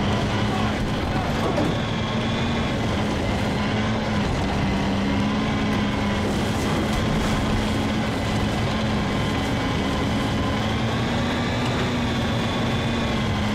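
Tank tracks clank and rumble over the ground.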